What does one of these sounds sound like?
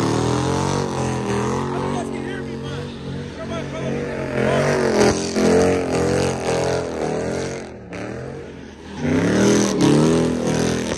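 A car engine revs loudly, rising and falling in pitch.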